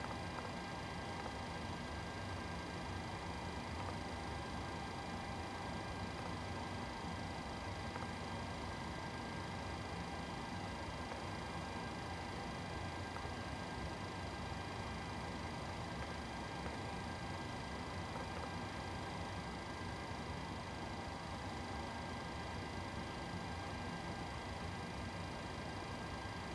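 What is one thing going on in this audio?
Jet engines hum steadily from nearby.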